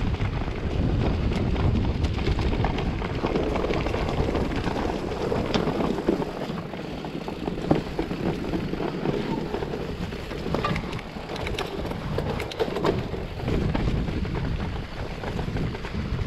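Wind rumbles against a nearby microphone.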